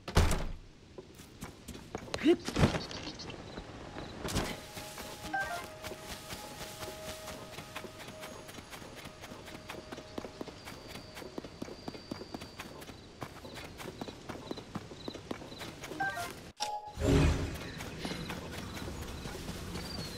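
Quick footsteps patter and rustle through grass.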